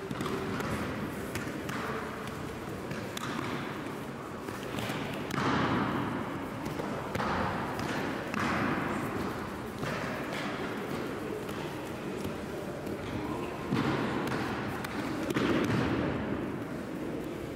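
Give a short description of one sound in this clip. Bodies thud onto a mat.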